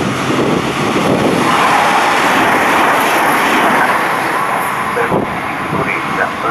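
A second train rolls slowly into the station.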